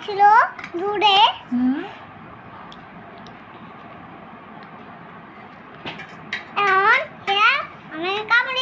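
A small child speaks in a high voice close by, in short bursts with pauses.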